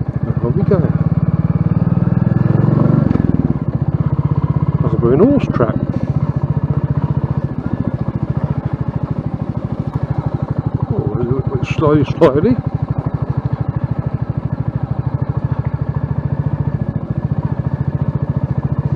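A motorcycle engine thumps steadily at low revs, close by.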